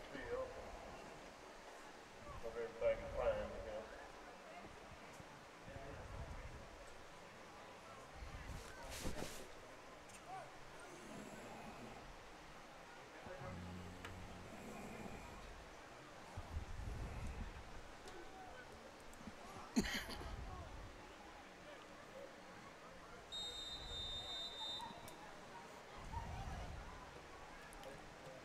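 A crowd murmurs and calls out at a distance outdoors.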